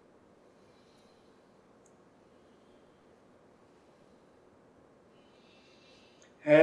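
A man speaks calmly and slowly, close by.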